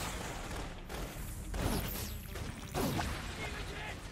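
Energy blasts crackle and boom in quick bursts.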